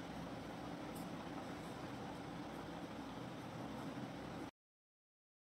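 A pencil scratches softly on paper.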